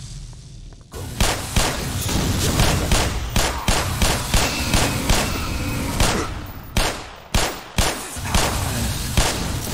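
A pistol fires rapid, loud shots.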